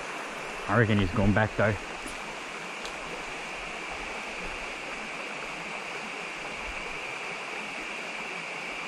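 Water trickles gently over stones in a creek.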